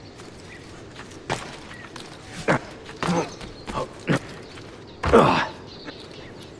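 Hands and feet thud and scrape on stone during a climb.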